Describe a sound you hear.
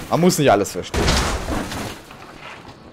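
A heavy metal door scrapes open.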